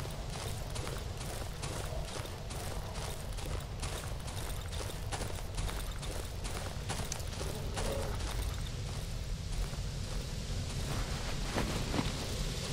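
Footsteps crunch in a steady rhythm.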